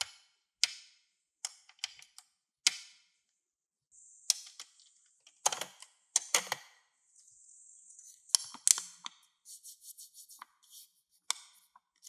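Plastic toy buttons click as they are pressed.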